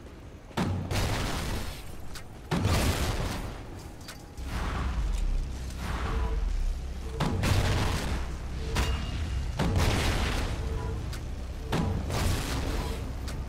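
Explosions boom loudly and rumble away.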